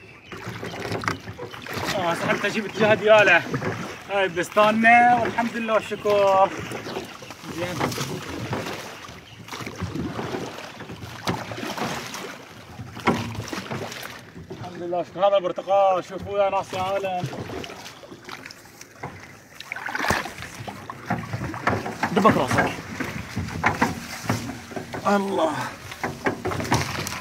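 Oars splash and knock as a boat is rowed through water.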